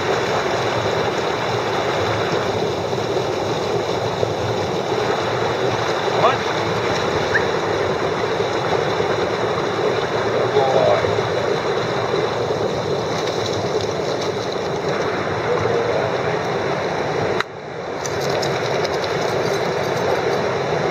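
A shallow rocky stream rushes and burbles.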